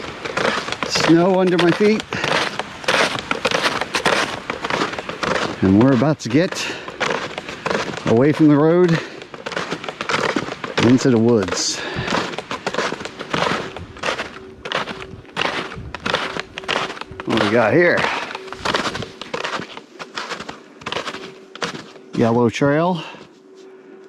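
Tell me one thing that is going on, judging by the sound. A man talks with animation close to the microphone, slightly out of breath.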